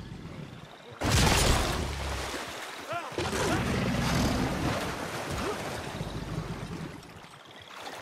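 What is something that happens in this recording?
Water splashes violently nearby.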